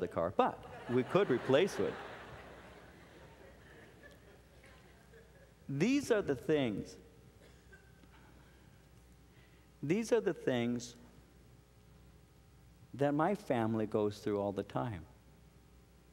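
A man speaks with feeling into a microphone, pausing between phrases.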